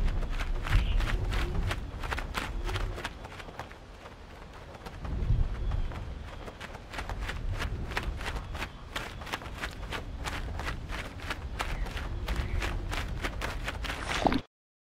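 A bird flaps its wings in quick, repeated beats.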